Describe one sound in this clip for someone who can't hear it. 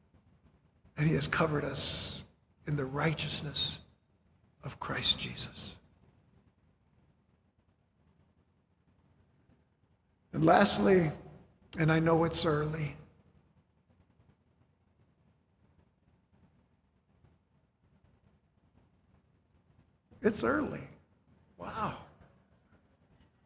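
An older man speaks with animation through a microphone, in short bursts with long pauses.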